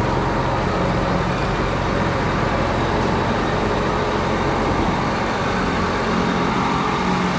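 Tyres crunch slowly over dirt and gravel.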